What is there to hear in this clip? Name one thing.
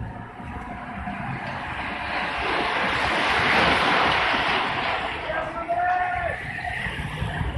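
A pack of racing bicycles whirs past close by.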